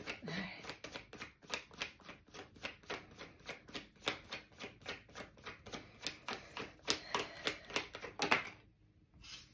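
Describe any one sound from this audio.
Playing cards riffle and flick rapidly as they are shuffled close by.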